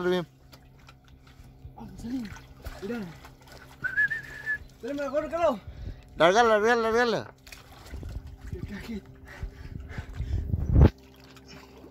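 Water gurgles and splashes as a jug is filled.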